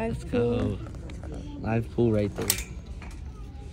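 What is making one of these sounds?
Plastic hangers clatter as they slide along a metal rail.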